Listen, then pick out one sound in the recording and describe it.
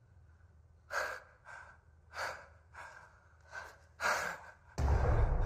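A young man laughs softly and whispers.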